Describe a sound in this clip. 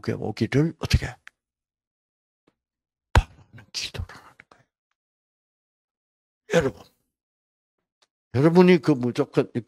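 An elderly man speaks with animation into a microphone, with pauses between phrases.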